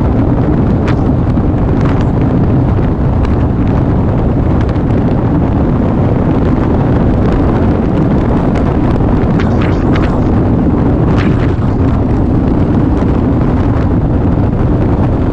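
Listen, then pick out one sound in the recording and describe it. Wind rushes loudly past a rider's helmet.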